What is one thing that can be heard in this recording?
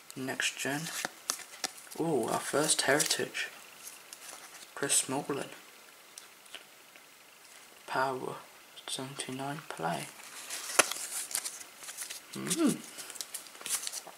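Trading cards rustle and slide against each other as they are handled.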